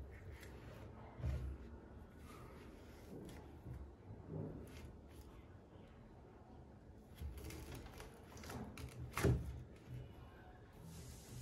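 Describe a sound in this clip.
A knife chops and scrapes into a coconut's soft husk with dull thuds.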